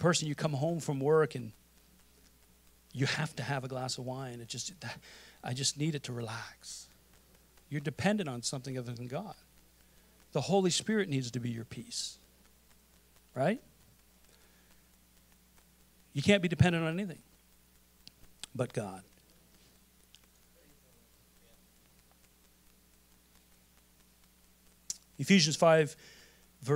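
A man speaks calmly into a microphone in bursts with pauses, heard through a loudspeaker.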